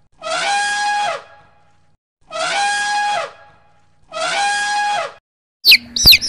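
An elephant trumpets loudly several times.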